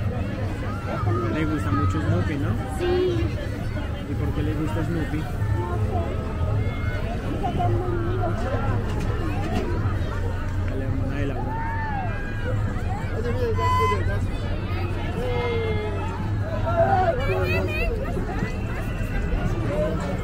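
A large outdoor crowd chatters and calls out all around.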